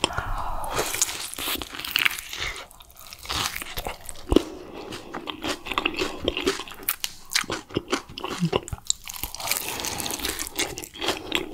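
A young woman bites into chicken close to a microphone.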